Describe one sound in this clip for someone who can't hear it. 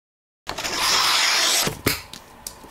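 A knife scrapes sharply.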